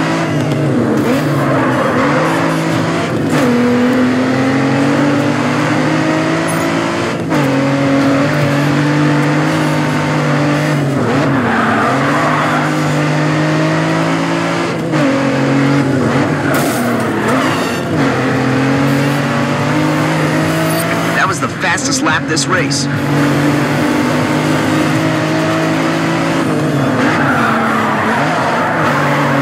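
A car engine roars loudly, rising in pitch and dropping back as the gears shift.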